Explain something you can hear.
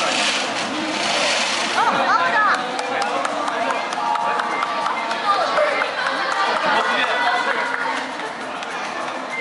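A crowd of people chatters and murmurs.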